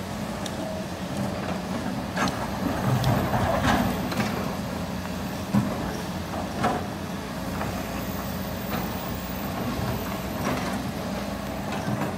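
Rocks clatter and thud as an excavator bucket digs.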